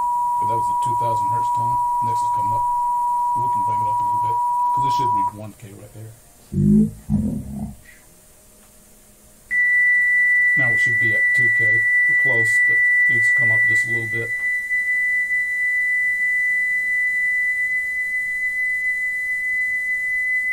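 A steady high test tone plays from a tape machine.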